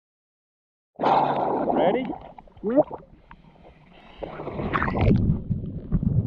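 Water laps and splashes close by at the surface.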